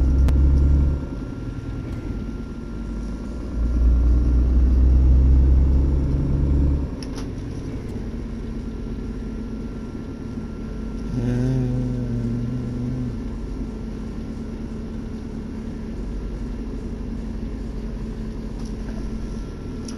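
A truck engine rumbles steadily with a deep low drone.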